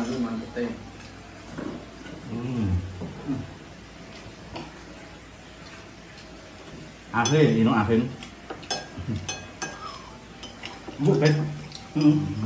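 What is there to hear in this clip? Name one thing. Utensils clink against plates.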